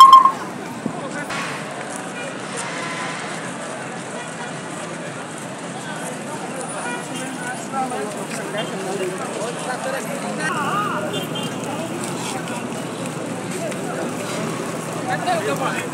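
Many footsteps shuffle on pavement.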